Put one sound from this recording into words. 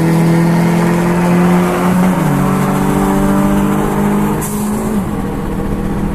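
A car engine roars close by, its pitch shifting as it changes gear.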